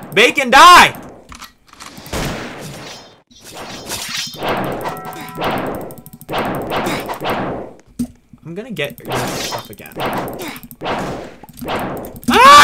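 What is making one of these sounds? Sword slashes whoosh repeatedly in a video game.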